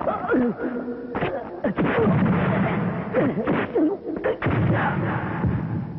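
A man shouts with strain.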